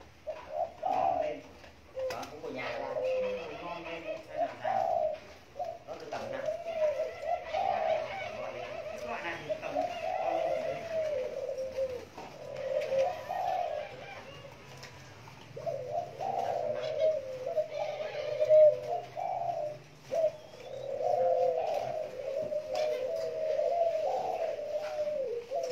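Doves coo repeatedly close by, with soft, rolling calls.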